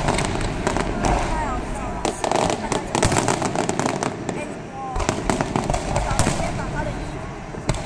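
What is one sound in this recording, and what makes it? Fireworks whistle as they rise.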